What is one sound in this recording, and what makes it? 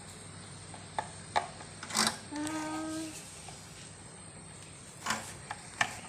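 A screwdriver scrapes and clicks against a fan's plastic housing.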